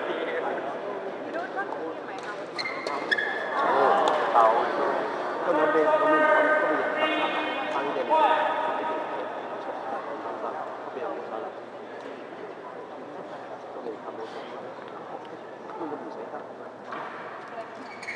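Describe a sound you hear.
A crowd of spectators chatters and cheers in a large echoing hall.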